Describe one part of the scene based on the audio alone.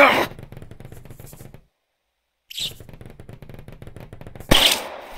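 Wet squelching thuds come in quick succession as a body is stabbed.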